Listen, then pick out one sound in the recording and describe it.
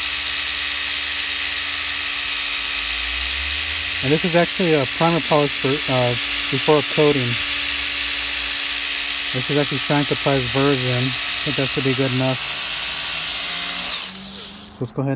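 A small electric polisher whirs steadily with a high, buzzing hum, then switches off.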